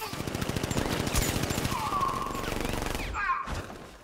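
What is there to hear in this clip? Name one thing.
An electric charge zaps and crackles.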